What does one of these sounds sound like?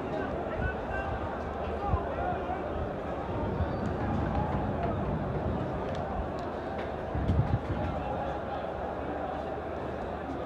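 Players shout to each other across a large open stadium.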